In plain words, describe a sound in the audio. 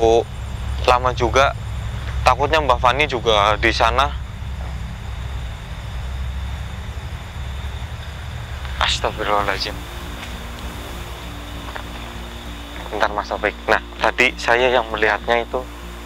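A young man speaks in a hushed, tense voice close by.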